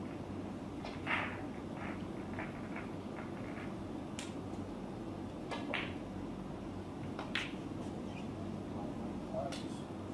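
Snooker balls click against each other as they are gathered and racked.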